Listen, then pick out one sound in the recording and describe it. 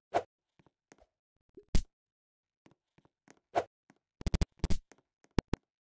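Short game sound effects of hits and blows ring out in quick bursts.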